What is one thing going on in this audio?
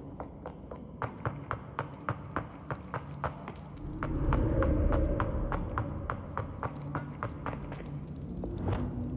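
Quick footsteps run across a stone floor.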